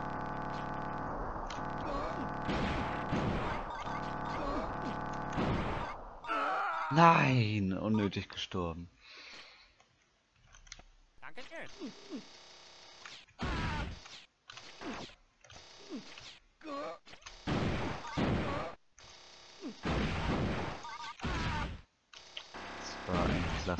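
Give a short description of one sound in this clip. Video game gunfire crackles in rapid bursts.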